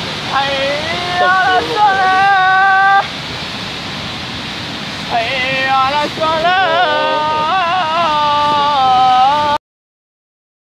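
Floodwater rushes and roars loudly outdoors.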